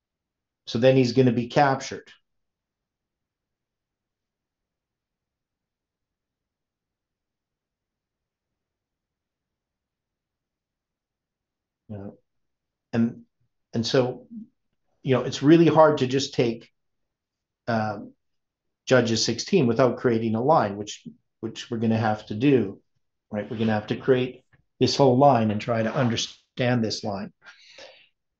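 An older man speaks calmly and closely into a microphone, with pauses.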